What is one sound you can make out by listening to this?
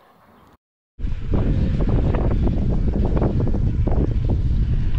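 Wind buffets loudly outdoors as a bicycle rides along a dirt track.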